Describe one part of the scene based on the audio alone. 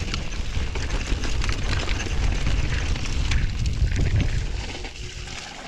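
Bicycle tyres rattle and crunch over a rocky trail.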